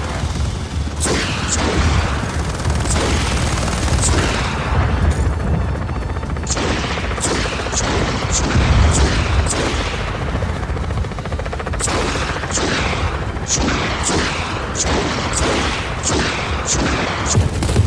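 Rockets launch in quick bursts with sharp whooshes.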